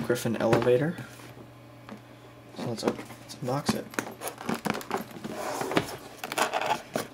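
Hands rub and tap against a cardboard box.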